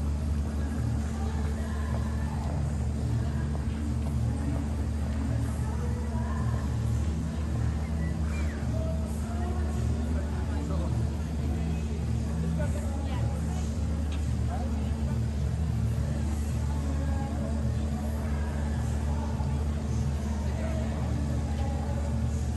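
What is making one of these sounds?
A crowd of people murmurs and chatters outdoors.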